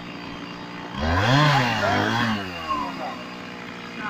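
A chainsaw revs up briefly.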